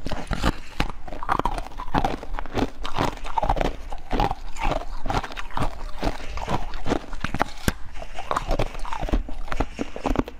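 A young woman chews with wet smacking sounds close to a microphone.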